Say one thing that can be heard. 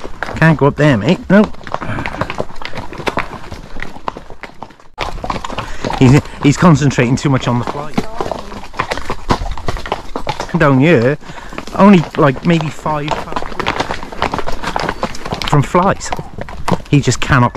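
Horses' hooves clop on a gravel track.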